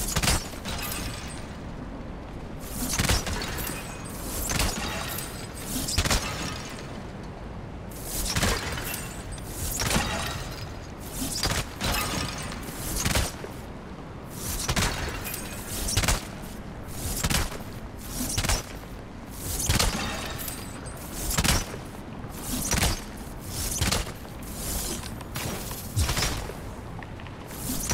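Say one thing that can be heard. An arrow shoots from a bow and strikes with a sharp impact, over and over.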